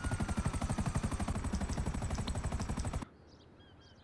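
A helicopter's rotor chops rapidly overhead.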